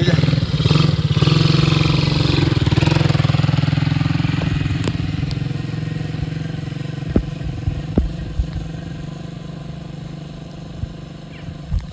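A small quad bike engine hums close by, then drives away and fades.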